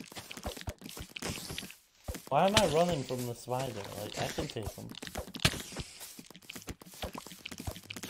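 A spider hisses close by.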